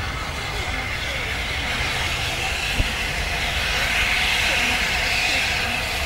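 A steam locomotive approaches, roaring louder as it nears.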